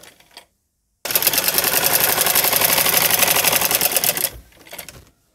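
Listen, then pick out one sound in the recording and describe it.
A sewing machine runs with a fast, steady rattle.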